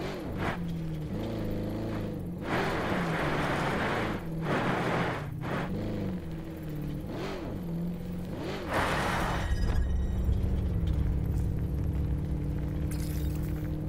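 A vehicle engine roars and revs.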